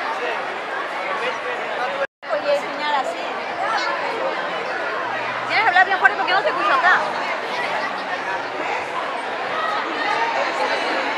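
A crowd of children and adults chatters in a busy room.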